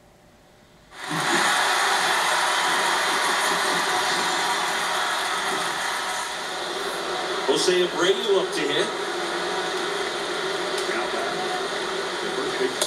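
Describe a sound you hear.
A stadium crowd roars steadily through a television loudspeaker.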